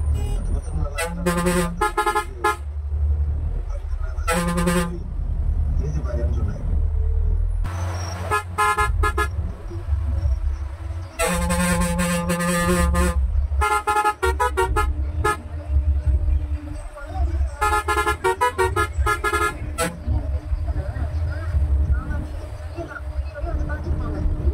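A bus engine rumbles steadily while driving along a road.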